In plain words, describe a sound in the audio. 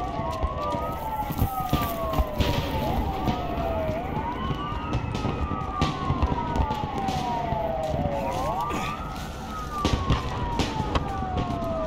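Footsteps tread on hard pavement.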